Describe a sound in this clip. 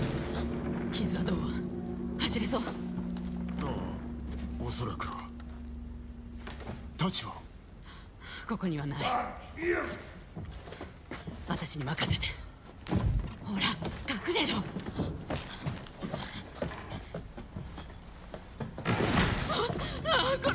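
A young woman speaks urgently and quietly.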